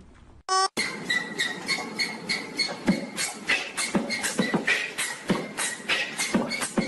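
A ceiling fan spins with a rhythmic knocking.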